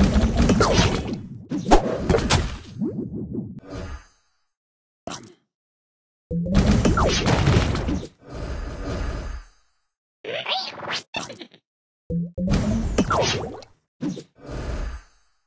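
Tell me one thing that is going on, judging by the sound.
Cartoon game effects burst and chime in short flurries.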